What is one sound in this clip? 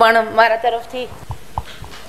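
A woman sings with a strong voice through a microphone.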